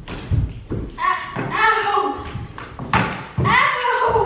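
A young woman screams loudly nearby.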